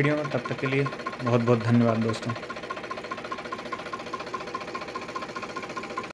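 A tractor engine idles with a steady, rapid chugging.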